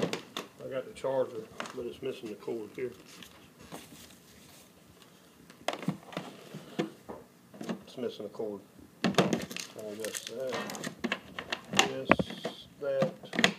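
Plastic parts knock and clatter in a hard plastic carrying case.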